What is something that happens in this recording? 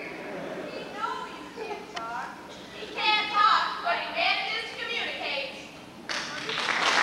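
Two young women sing together, heard from a distance in a large hall.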